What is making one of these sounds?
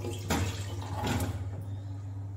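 Metal pots clink together as they are handled.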